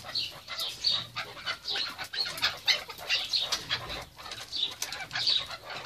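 A partridge flaps its wings briefly.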